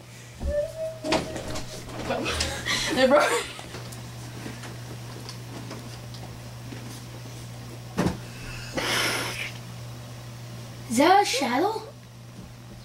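A young boy shouts and laughs excitedly close by.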